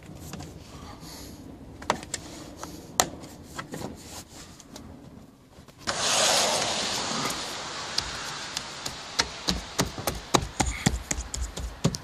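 A rubber door seal rubs and squeaks under fingers.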